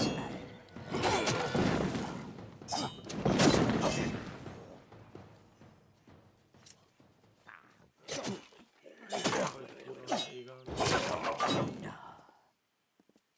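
A blade swishes and strikes with heavy impacts.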